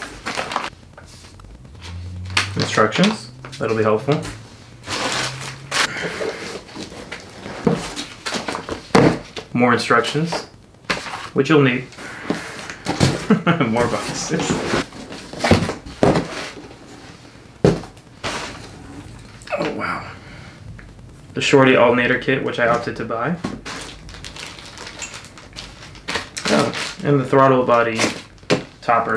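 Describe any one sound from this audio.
Plastic wrapping crinkles and rustles in a man's hands.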